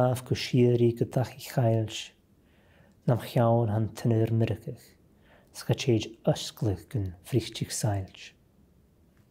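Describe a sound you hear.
A man reads aloud calmly and close by.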